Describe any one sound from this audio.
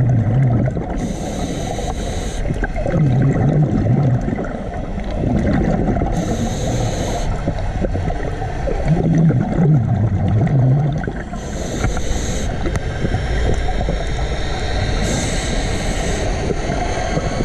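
A diver breathes out through a regulator in regular bursts of bubbles.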